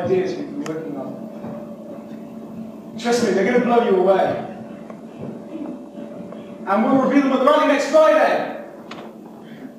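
A teenage boy speaks loudly on a stage in an echoing hall.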